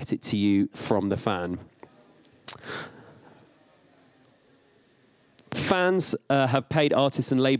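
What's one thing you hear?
A man speaks with animation into a microphone, heard through loudspeakers, pausing between phrases.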